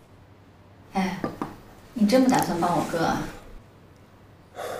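A young woman speaks quietly close by.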